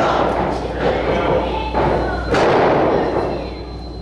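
A wrestler slams onto a ring mat with a heavy thud.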